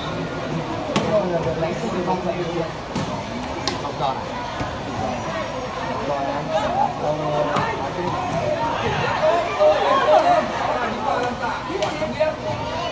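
Players kick a ball with sharp thumps.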